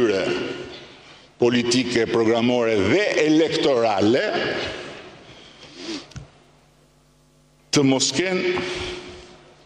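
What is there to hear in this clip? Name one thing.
An older man speaks with animation into a microphone, in a large echoing hall.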